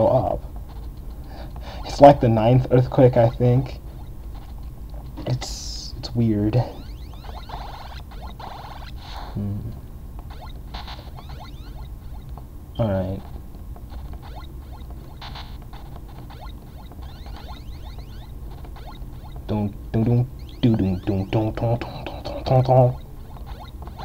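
Electronic game sound effects bleep in short bursts.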